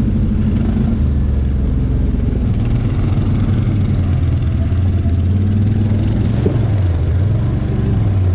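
Tyres splash through muddy puddles.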